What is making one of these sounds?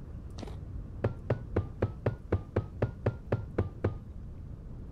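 Blocks are placed with quick repeated taps.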